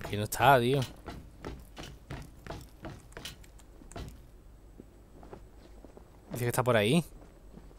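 Footsteps clank on metal walkways.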